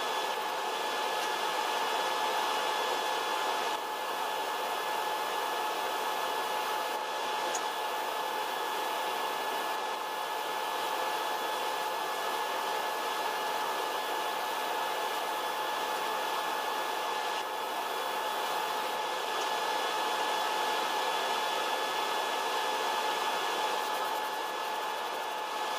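A spray gun hisses steadily.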